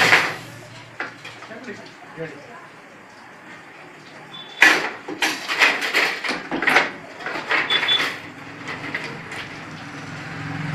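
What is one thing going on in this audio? Thin metal wires clink and rattle as they are handled.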